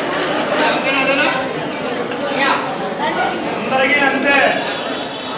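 A large crowd of men and women chatters loudly with echo.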